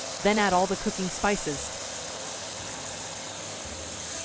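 Liquid pours into a sizzling pan.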